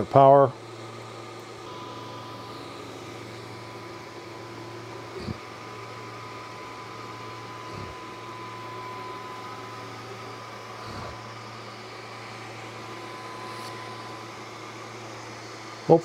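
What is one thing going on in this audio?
A cooling fan whirs steadily.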